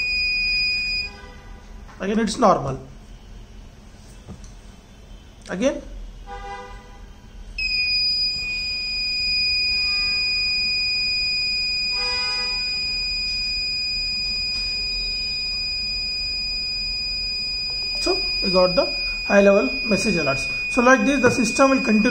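An electronic buzzer sounds a steady, shrill high tone.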